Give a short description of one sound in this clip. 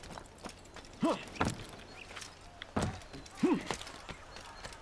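A young man exclaims loudly into a microphone.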